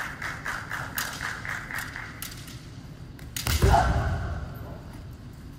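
Fencers shout sharp, loud cries in an echoing hall.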